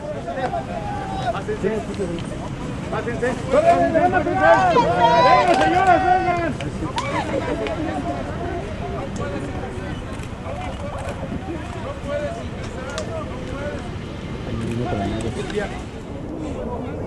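Men talk and shout excitedly nearby, outdoors.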